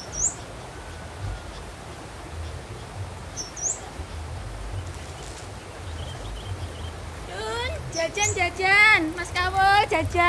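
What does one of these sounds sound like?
Water flows steadily along a narrow channel.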